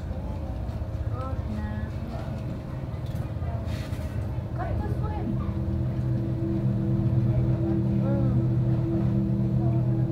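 Water bubbles and gurgles steadily in an aquarium.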